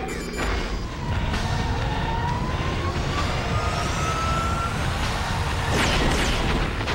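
A spacecraft engine whines as it flies overhead, rising slowly in pitch.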